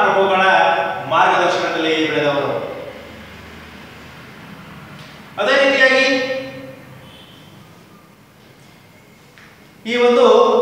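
A young man speaks loudly and with animation, close by, in a room with some echo.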